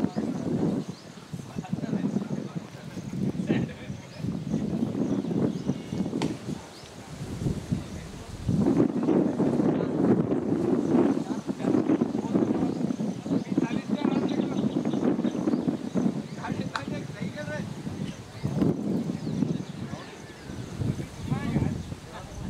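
Men call out and talk outdoors at a distance.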